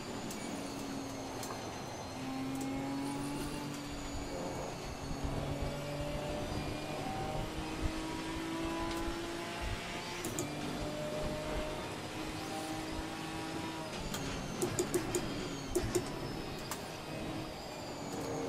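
A racing car engine roars and shifts through the gears.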